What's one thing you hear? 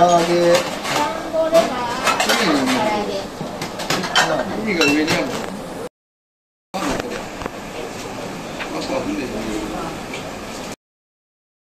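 Metal pots and utensils clink and clatter.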